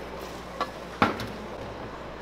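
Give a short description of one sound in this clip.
A metal bowl clanks against another metal bowl.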